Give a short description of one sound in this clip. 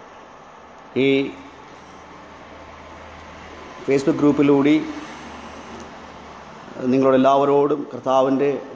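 A man speaks calmly and close by, in short bursts.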